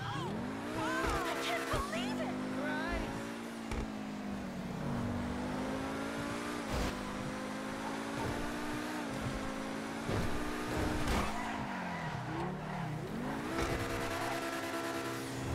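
A sports car engine roars steadily, its pitch rising and dropping with each gear change.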